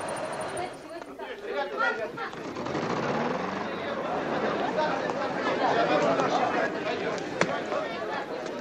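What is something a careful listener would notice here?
A crowd of young people chatters and calls outdoors.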